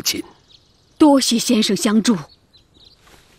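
A young man answers politely.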